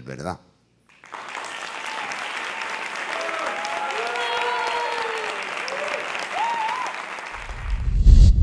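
People clap their hands in applause.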